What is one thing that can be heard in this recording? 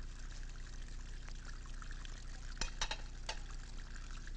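Dishes clatter in a sink.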